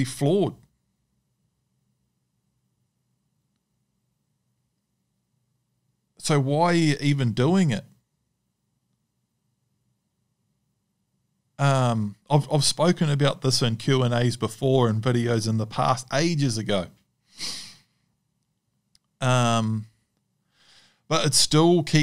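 A man speaks calmly and closely into a microphone, pausing often.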